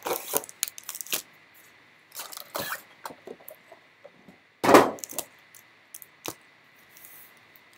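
Foil card packs rustle and slide against each other.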